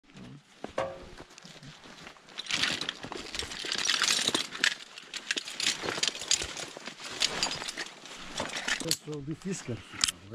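Fabric and gear rustle as hands rummage through a bag.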